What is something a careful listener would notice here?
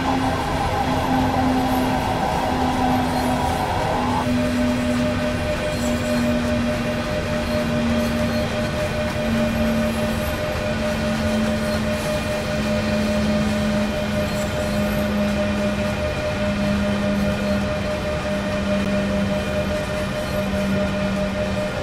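A heavy train rumbles steadily along the rails.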